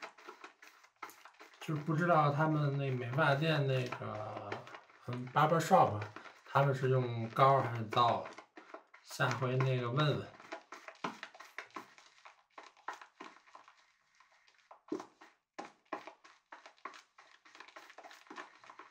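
A brush swirls and scrapes in lather in a bowl.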